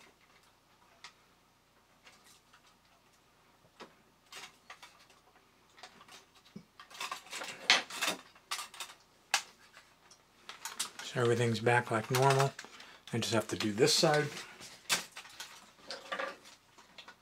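Metal parts of a tin toy click and rattle as it is handled.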